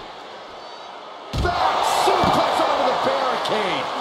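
A heavy body slams down onto a ring mat with a thud.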